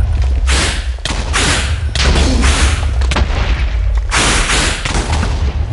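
Explosions boom and crackle repeatedly.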